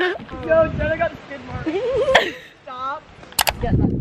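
A young woman laughs and talks with animation close to the microphone.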